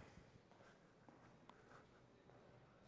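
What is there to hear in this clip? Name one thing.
A man's footsteps tap softly across a hard floor.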